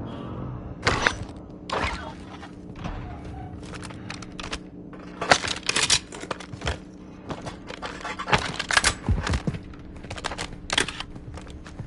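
A rifle clicks and rattles as it is handled.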